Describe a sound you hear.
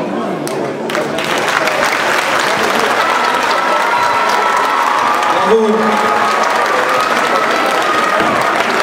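An audience cheers and applauds in a large hall.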